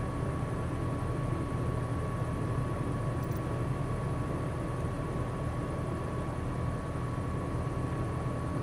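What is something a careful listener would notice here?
A jet engine hums steadily at idle.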